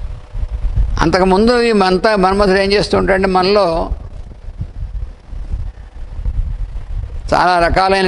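An elderly man chants in a steady, drawn-out voice through a microphone.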